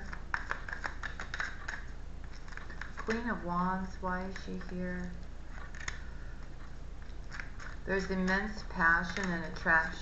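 Playing cards shuffle and riffle in a woman's hands.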